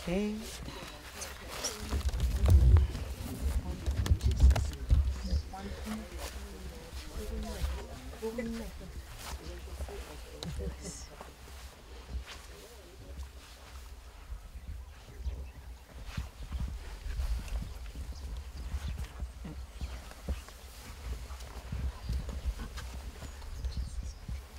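A man prays aloud with fervour, close by.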